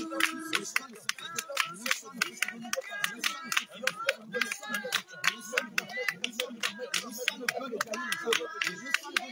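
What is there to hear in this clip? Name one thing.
A group of women sing together outdoors.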